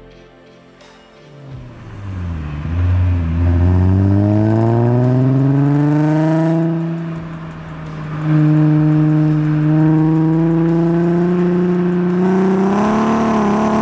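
A car engine revs up and down as the car accelerates through the gears.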